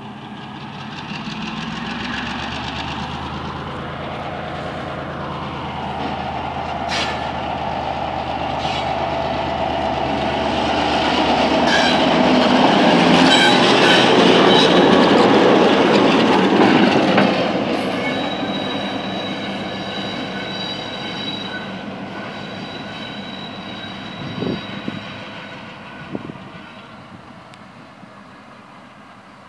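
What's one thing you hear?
A diesel locomotive rumbles past close by, then fades into the distance.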